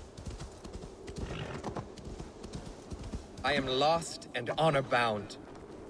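A horse's hooves crunch through snow.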